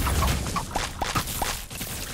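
A fiery beam blasts with a loud roar.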